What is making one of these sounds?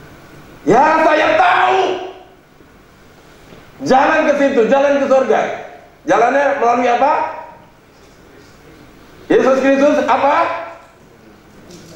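A man preaches with animation through a microphone in an echoing hall, in loud bursts with pauses.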